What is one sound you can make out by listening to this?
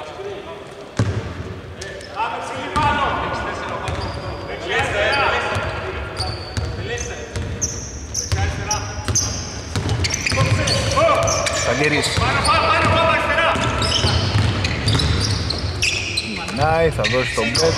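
A basketball bounces on a hardwood court, echoing in a large empty hall.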